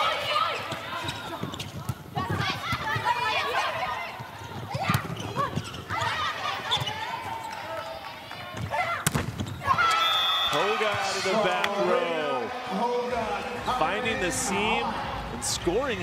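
A crowd cheers in a large echoing arena.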